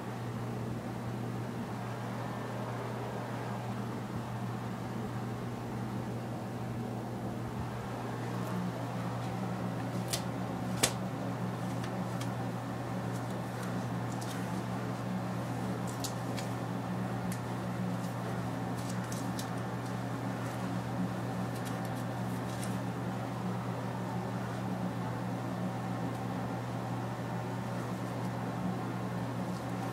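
Fabric rustles as clothing is handled close by.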